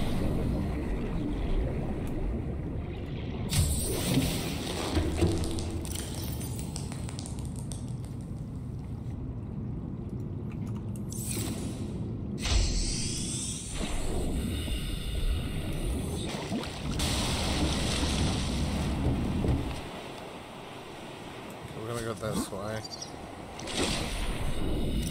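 Deep underwater rumbling and bubbling from a game play steadily.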